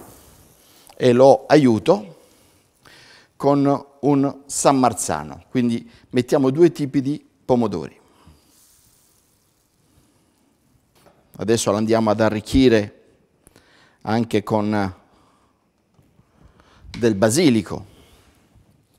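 A man talks calmly and clearly into a microphone, close by.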